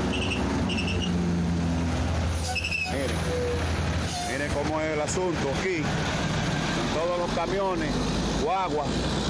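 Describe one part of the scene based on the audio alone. A heavy truck engine rumbles loudly close by.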